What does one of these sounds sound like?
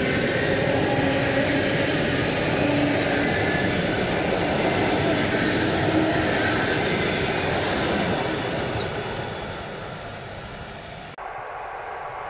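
A train rushes past close by with a loud rumble and rattle, then fades.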